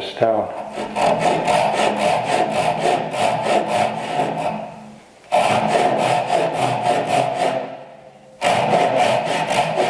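A hand saw cuts wood with quick, rhythmic strokes.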